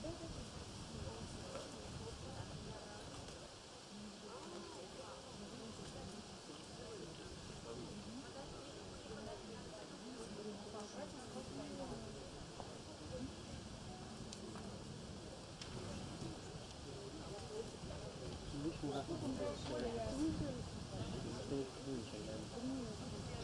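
A woman strums an acoustic guitar.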